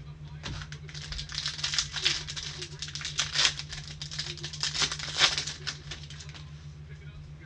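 A plastic wrapper crinkles and tears as it is opened.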